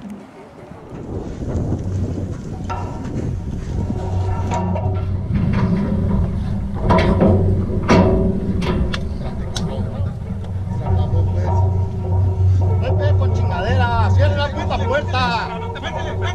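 Wind blows hard against the microphone outdoors.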